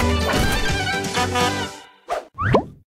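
A short cheerful music jingle plays.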